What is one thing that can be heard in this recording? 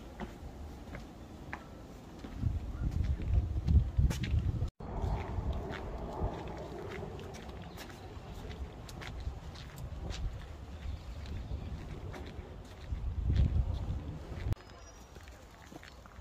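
Footsteps tap on a paved path.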